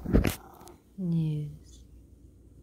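A cat meows close by.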